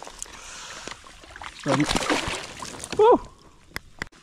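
Water splashes as a fish is released back into the water.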